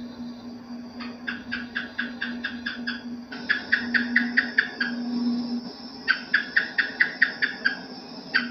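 Geckos chirp in quick clicking bursts.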